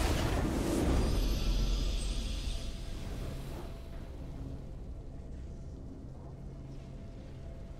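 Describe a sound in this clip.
A victory fanfare plays and fades.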